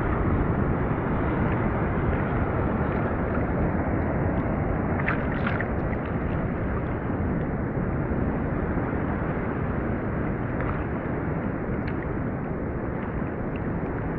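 Water laps and splashes close by in the open sea.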